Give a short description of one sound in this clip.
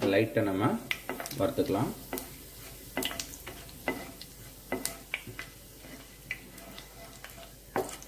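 A spatula scrapes and stirs in a frying pan.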